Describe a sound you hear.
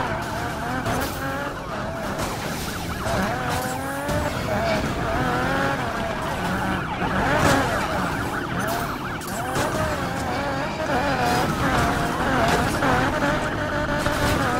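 A car engine roars and revs loudly.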